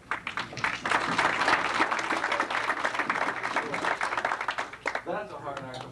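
An audience claps and applauds in a room.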